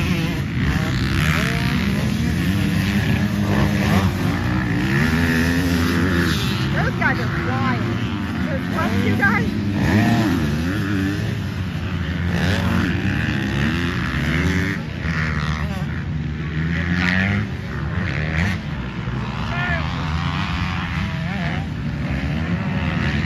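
Several dirt bike engines rev and whine, rising and falling in pitch.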